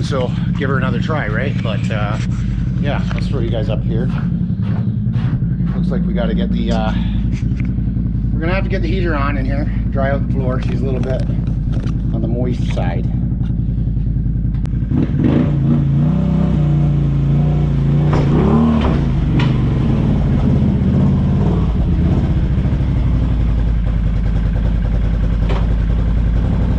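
An engine idles with a steady rumble.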